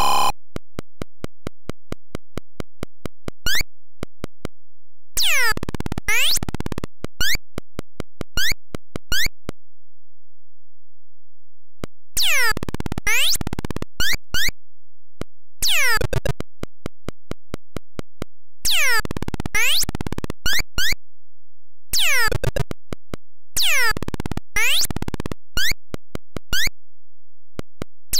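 A retro game character's footsteps tick rapidly in short electronic clicks.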